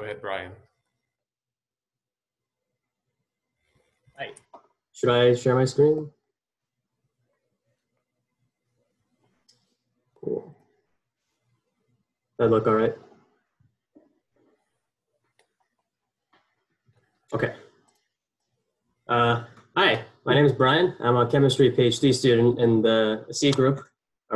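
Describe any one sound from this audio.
A young man speaks calmly through an online call, in short bursts with pauses.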